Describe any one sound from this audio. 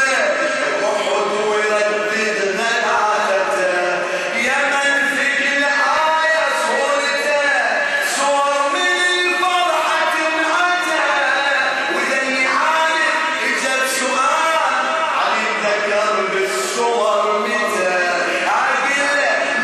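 A man chants through a microphone in an echoing hall.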